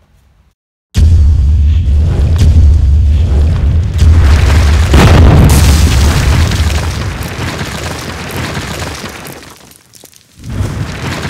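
A wall crashes apart with a loud rumbling roar.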